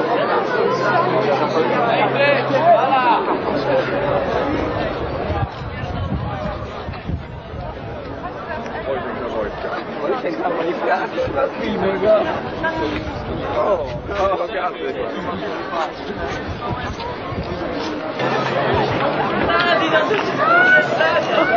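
A large crowd chatters outdoors in the open air.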